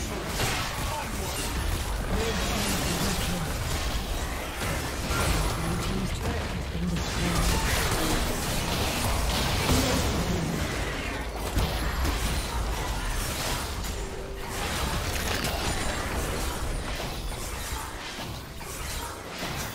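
Video game spells and weapon hits crackle and boom in a fast battle.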